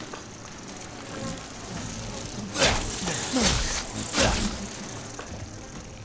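Flies buzz close by.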